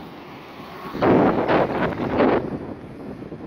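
A pickup truck drives past close by.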